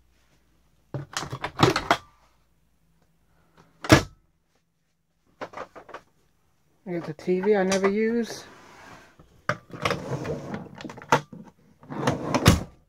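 Objects knock and clatter close by inside a storage compartment.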